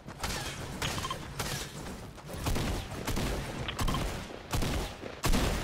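A pickaxe strikes a rock wall with sharp, repeated hits.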